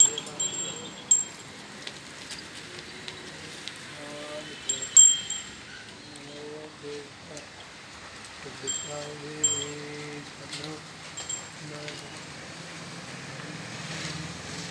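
A cow's hooves shuffle and thud on soft dirt.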